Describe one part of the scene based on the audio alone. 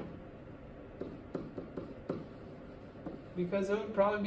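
A pen taps and squeaks on a board.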